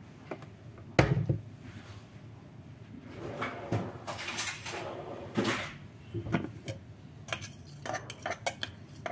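A plastic lid clicks and knocks against a container.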